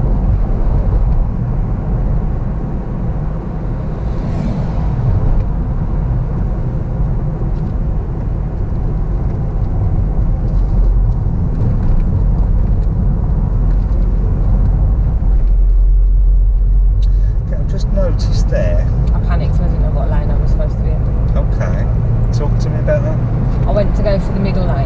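A car engine hums and wind rushes past.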